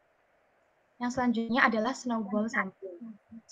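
A young woman speaks calmly through an online call microphone.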